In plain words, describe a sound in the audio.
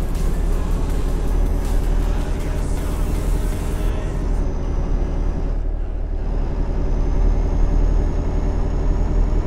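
A truck engine drones steadily at low pitch.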